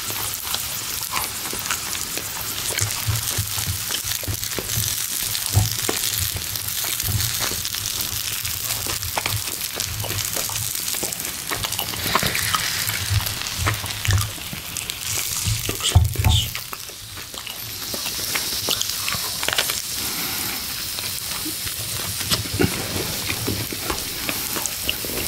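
Food sizzles steadily on a hot grill.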